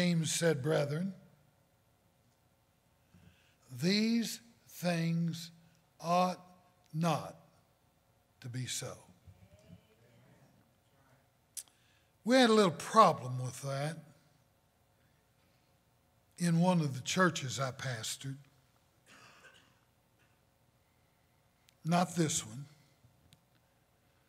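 An elderly man preaches with animation into a microphone, in bursts with pauses.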